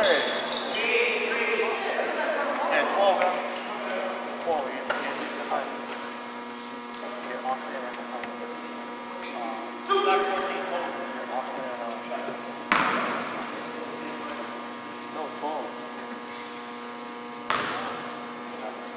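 Young men talk and call out in a large echoing hall.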